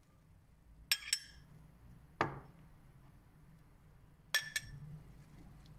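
A metal spoon clinks sharply against a ceramic bowl.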